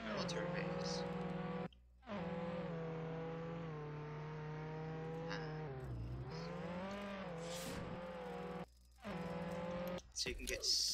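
A video game car engine drones and hums.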